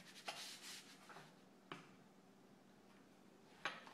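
A pizza cutter rolls softly across fondant.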